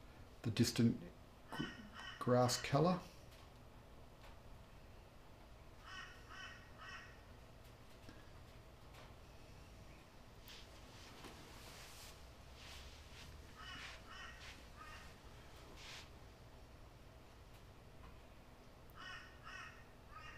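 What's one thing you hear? A paintbrush scrapes softly across a canvas.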